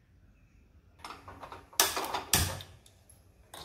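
A gas stove lighter clicks.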